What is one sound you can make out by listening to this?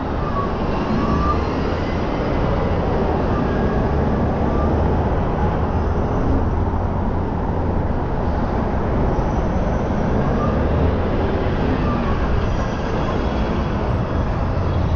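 Wind buffets loudly and steadily, as if outdoors on a moving bicycle.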